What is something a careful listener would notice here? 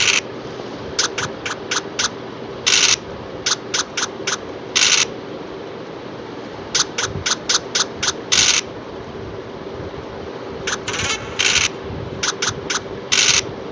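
Short quick clicks tick as game pieces hop across the board.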